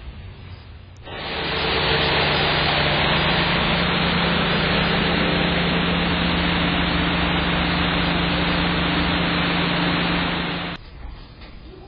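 A truck engine idles nearby with a steady rumble.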